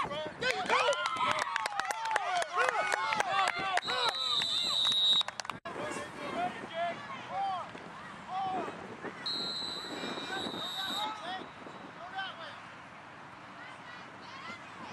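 Children shout and cheer excitedly outdoors.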